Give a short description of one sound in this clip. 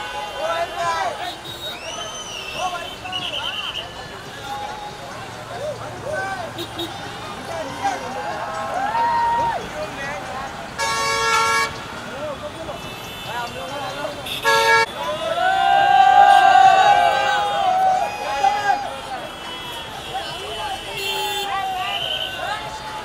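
A crowd cheers and screams excitedly outdoors.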